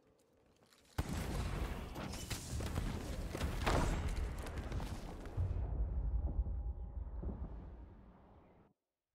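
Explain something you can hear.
Fire roars and crackles close by.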